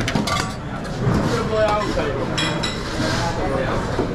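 Salad leaves rustle as they are tossed in a metal bowl.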